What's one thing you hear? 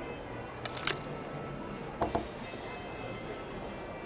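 A playing card flips down onto a table.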